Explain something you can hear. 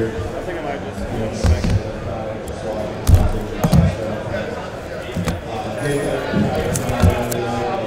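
A cardboard box slides and taps on a table.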